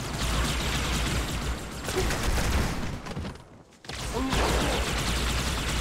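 A plasma gun fires rapid crackling bursts.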